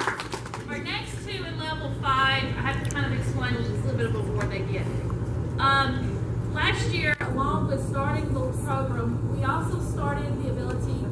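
A woman speaks with animation through a microphone in a hall with some echo.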